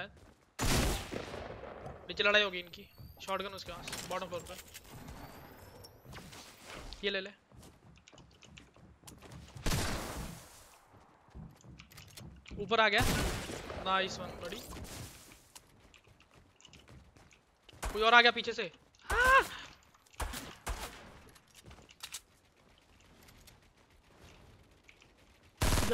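Footsteps patter quickly in a video game.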